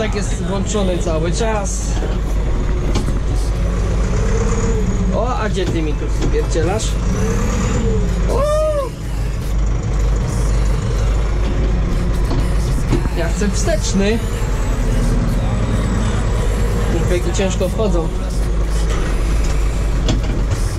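A tractor engine rumbles steadily, heard from inside the cab.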